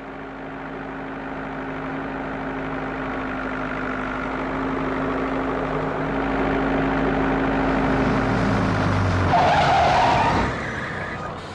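A tractor engine chugs steadily, growing louder as it approaches.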